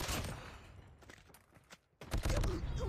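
A weapon clicks as it is reloaded.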